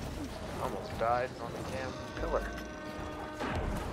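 Rocks crash and rumble to the ground.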